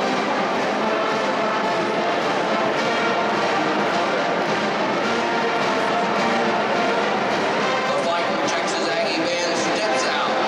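A large crowd murmurs and cheers throughout a stadium.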